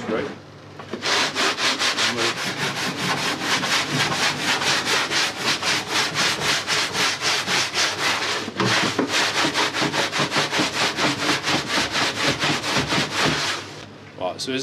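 A metal sieve tray rattles quickly as grain is shaken in it.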